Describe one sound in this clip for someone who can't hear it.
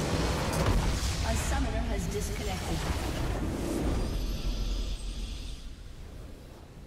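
A huge explosion booms and crackles, then dies away.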